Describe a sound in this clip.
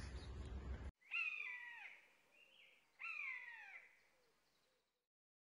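A donkey brays loudly nearby.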